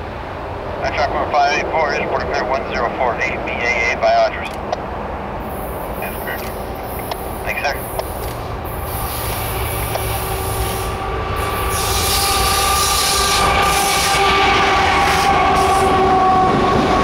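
A diesel locomotive engine rumbles and roars as it approaches and passes close by.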